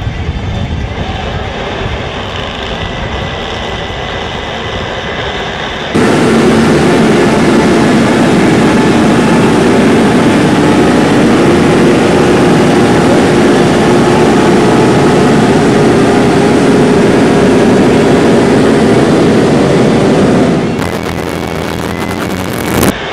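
Many motorcycle engines rev loudly and roar together.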